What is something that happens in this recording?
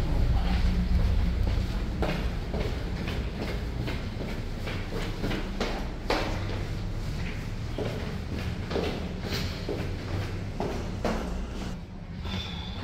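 Footsteps go steadily down hard stairs, echoing in a stairwell.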